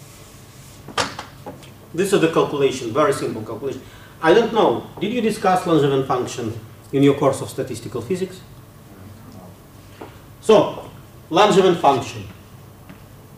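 A man lectures in a calm voice through a microphone.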